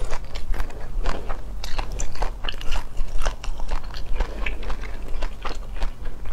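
Fingers peel and crack shrimp shells close to a microphone.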